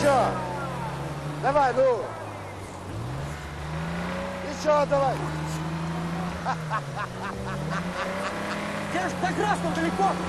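Men shout and call out nearby outdoors.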